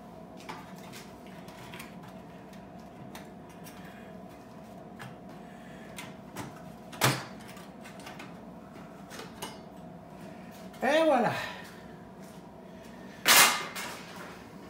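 Metal parts clatter and knock against a table.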